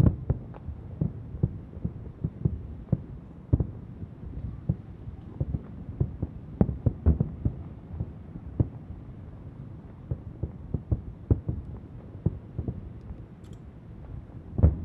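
Distant fireworks boom and crackle in irregular bursts, echoing across open air.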